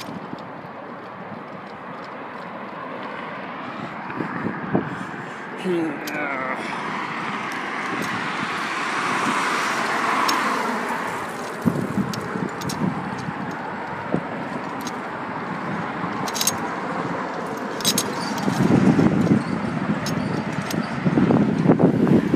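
Traffic rushes past on a nearby road.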